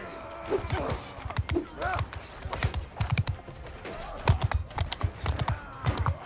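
Heavy footsteps thud quickly on dirt.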